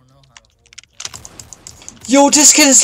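A gun fires several quick shots.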